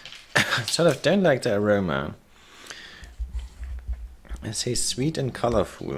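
A plastic candy wrapper crinkles in a hand.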